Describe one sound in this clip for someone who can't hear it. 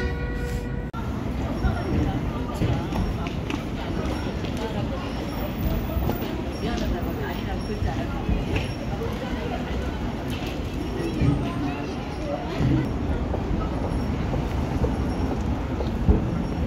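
A crowd of people chatters softly nearby.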